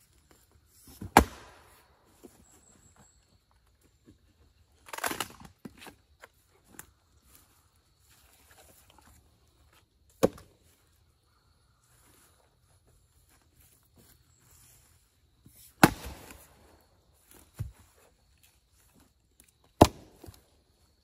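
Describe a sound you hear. An axe strikes and splits wood with sharp cracks, outdoors.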